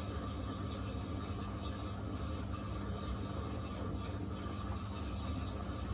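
A washing machine drum turns with a steady low hum.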